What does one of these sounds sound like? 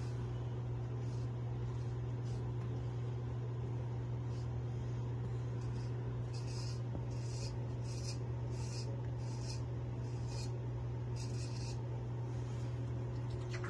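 A straight razor scrapes over stubble in short strokes.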